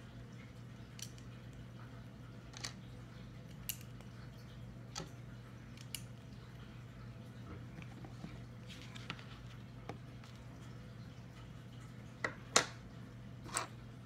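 Small plastic pieces click and tap as they are handled close by.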